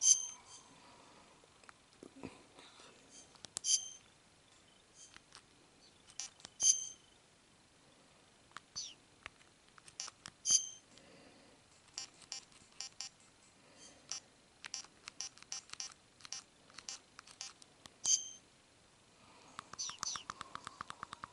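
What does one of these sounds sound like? A handheld game console plays short electronic menu beeps.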